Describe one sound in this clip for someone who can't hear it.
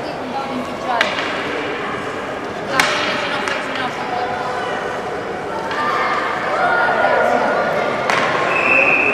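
Hockey sticks clack against the ice and puck.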